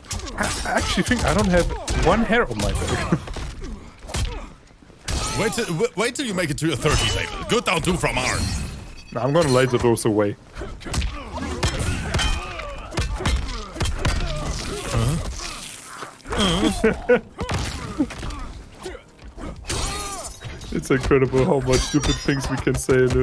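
Heavy punches and kicks land with dull thuds.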